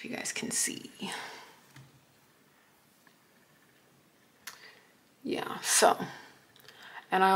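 A young woman speaks calmly and close by.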